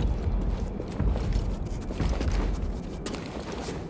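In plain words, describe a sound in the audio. Footsteps thud quickly across a hollow wooden floor.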